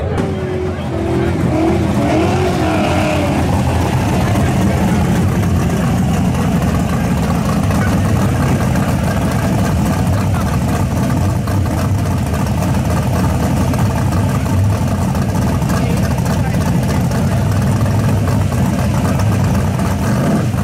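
A loud car engine rumbles and idles roughly close by.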